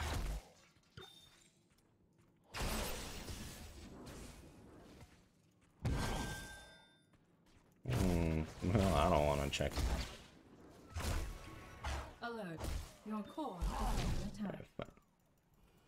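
Video game battle effects whoosh and crackle in bursts.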